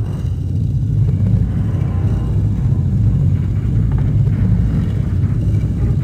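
A heavy stone door slides shut with a low, grinding rumble.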